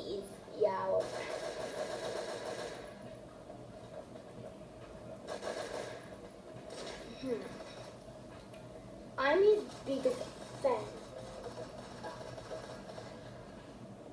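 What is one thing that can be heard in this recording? Video game gunfire crackles from a small speaker.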